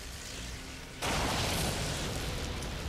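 Lightning crackles and bursts with a loud blast.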